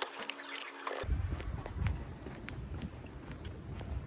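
Footsteps tap on pavement outdoors.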